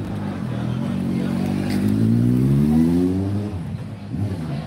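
A motorcycle engine revs and rises in pitch as it speeds past.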